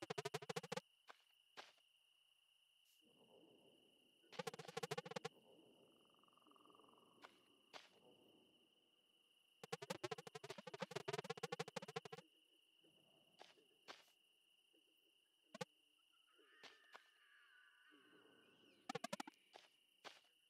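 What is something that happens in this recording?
Rapid electronic blips chatter in quick bursts.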